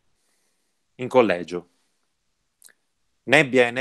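A young man reads aloud calmly into a close microphone, heard over an online call.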